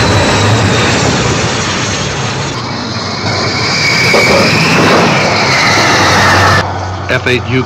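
A jet engine roars loudly, its whine rising and falling.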